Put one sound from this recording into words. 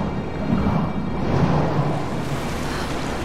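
A body plunges into water with a heavy splash.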